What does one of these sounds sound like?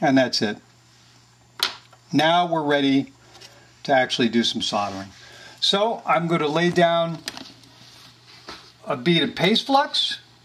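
Small plastic parts click as they are handled.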